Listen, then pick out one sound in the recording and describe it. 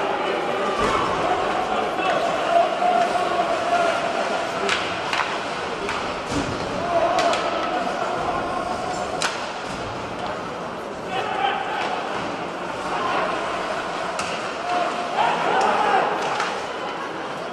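Ice skates scrape and carve across the ice.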